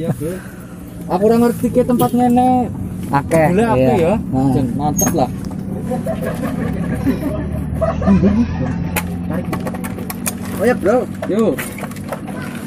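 Young men talk and joke with animation close by, outdoors.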